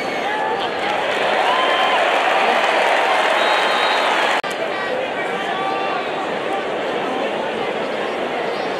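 A large stadium crowd cheers and roars outdoors.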